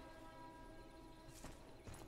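A young woman speaks calmly in a game voice.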